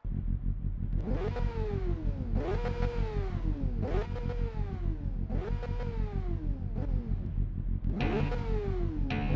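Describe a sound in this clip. A motorcycle engine revs up sharply again and again.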